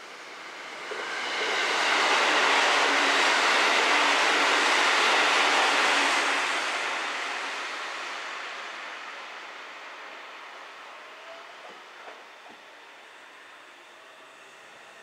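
A train rolls past on the tracks, loud at first and then fading into the distance.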